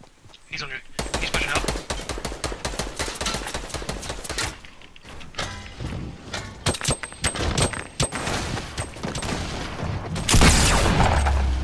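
Building pieces clatter and snap into place in quick succession.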